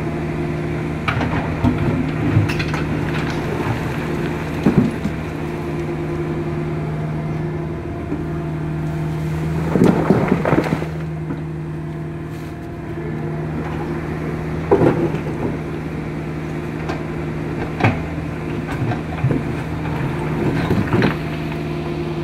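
An excavator bucket scrapes and knocks against rocks.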